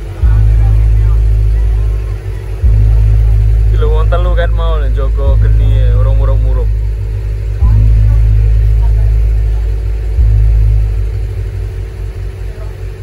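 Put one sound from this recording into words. A large gong booms loudly and rings out, again and again.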